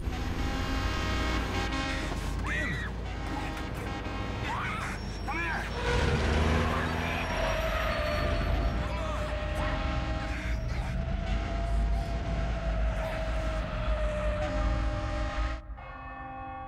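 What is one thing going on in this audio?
A truck engine rumbles loudly.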